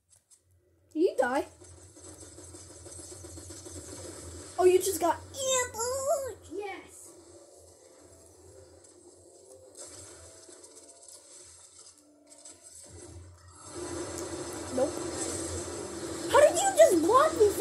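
Video game music and effects play from a television speaker.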